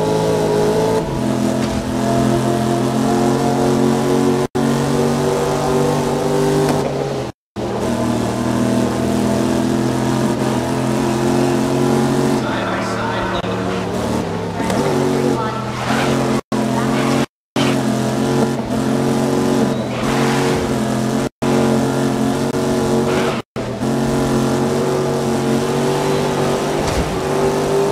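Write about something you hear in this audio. A race car engine roars loudly at high revs.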